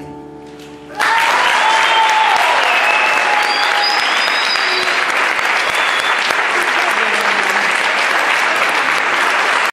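An audience claps and cheers loudly in a large echoing hall.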